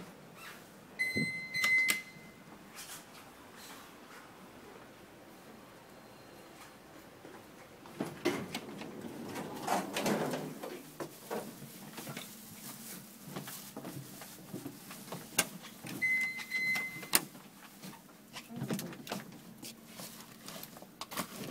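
A lift call button clicks as it is pressed.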